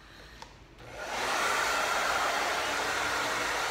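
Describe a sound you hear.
A hair dryer blows loudly close by.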